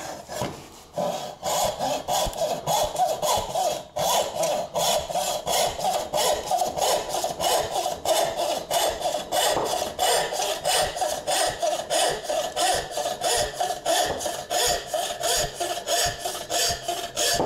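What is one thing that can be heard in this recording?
A hand saw cuts through wood in quick, steady rasping strokes.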